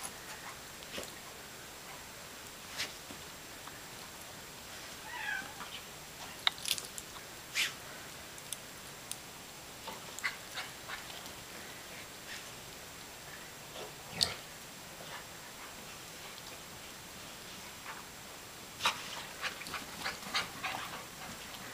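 A dog snuffles and digs in the snow with its nose.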